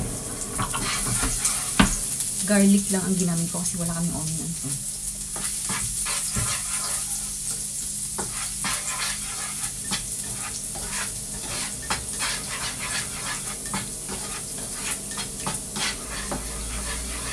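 A spatula scrapes and clicks against a frying pan.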